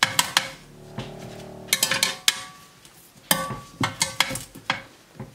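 A metal grill rack clatters and clinks.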